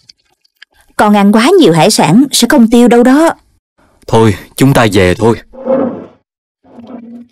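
A woman speaks with animation in a cartoon voice.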